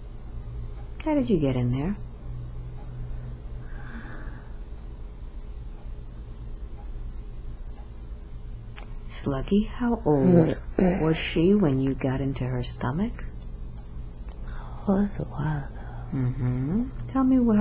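A woman speaks close by in a weary, pained voice.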